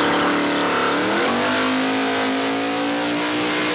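Tyres screech as a car does a burnout.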